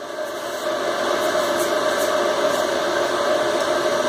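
An electric welding arc crackles and buzzes briefly.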